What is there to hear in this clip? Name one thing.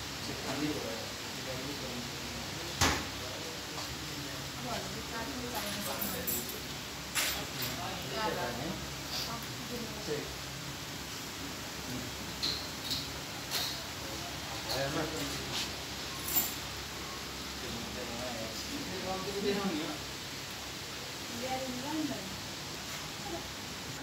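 Several adults talk calmly nearby.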